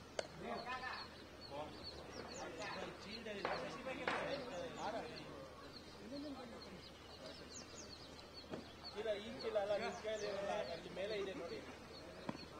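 A man talks calmly at a distance outdoors.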